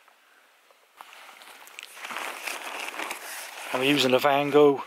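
Tent fabric rustles as a hand handles it.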